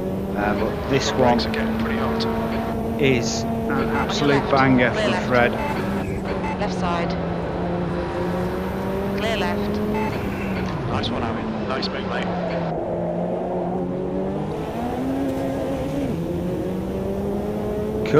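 A race car engine drones steadily at high revs, its pitch dipping and rising with gear changes.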